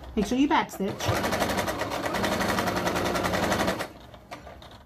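A sewing machine runs fast, stitching with a rapid, steady whir.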